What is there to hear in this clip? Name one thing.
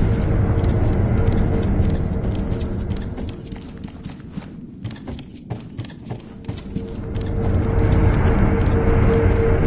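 Footsteps patter quickly on wooden floorboards.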